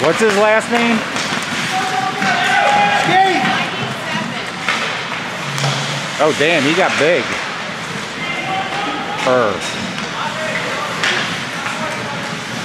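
Skates scrape and hiss across the ice.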